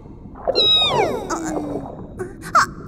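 A cartoon whale lets out a high, falling whistle.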